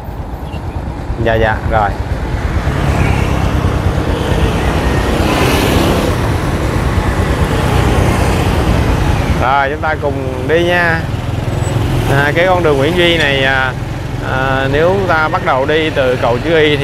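Motorbikes pass close by with buzzing engines.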